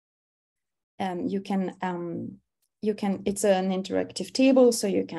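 A young woman speaks calmly through a microphone, as if on an online call.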